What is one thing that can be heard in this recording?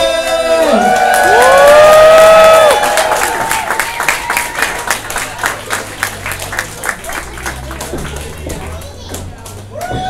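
A crowd claps in a steady rhythm in a room that echoes.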